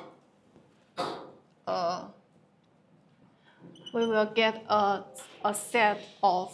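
A young woman talks calmly, lecturing close by.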